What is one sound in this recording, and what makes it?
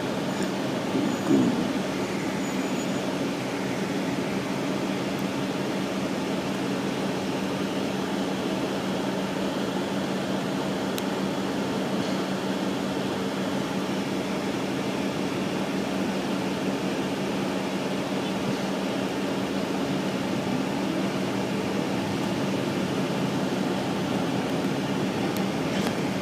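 A vehicle engine hums steadily from inside as it drives along.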